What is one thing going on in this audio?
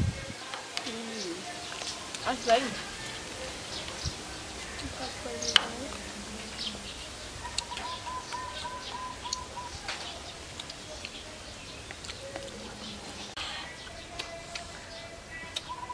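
Young women talk casually close by.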